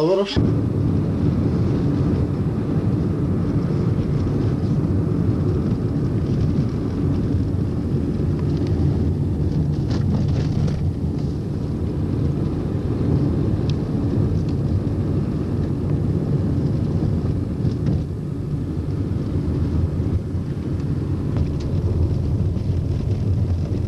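A car engine hums steadily, heard from inside the moving car.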